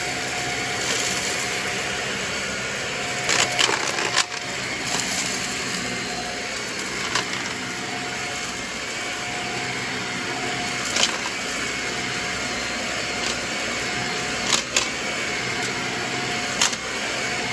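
A vacuum cleaner hums steadily, close by.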